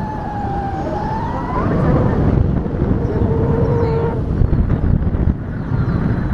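Wind rushes and buffets loudly past a microphone outdoors.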